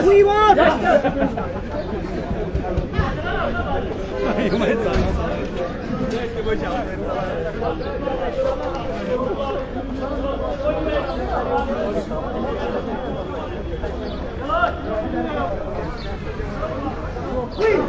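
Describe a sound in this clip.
A crowd of men shouts and talks in a noisy street.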